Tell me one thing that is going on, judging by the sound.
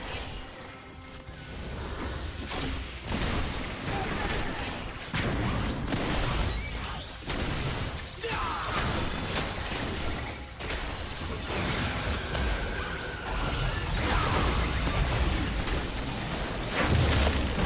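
Game characters' attacks thud and clang.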